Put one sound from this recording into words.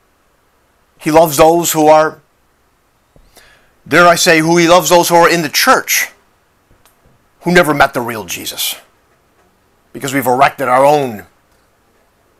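An older man speaks close by, calmly and in short bursts with pauses.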